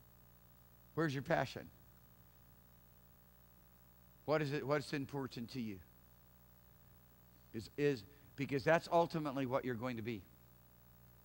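A man speaks calmly through a microphone in short phrases with pauses.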